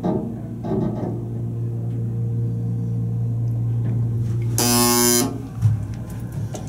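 An elevator motor hums steadily.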